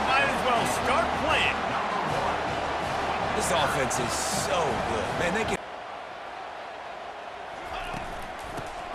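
A large crowd cheers and roars in a stadium, then quiets to a low murmur.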